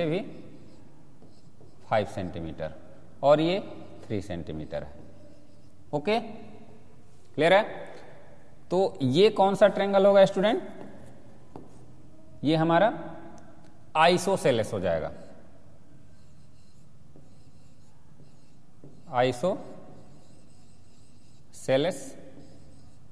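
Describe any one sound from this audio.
A man speaks in short phrases, calmly explaining, close by.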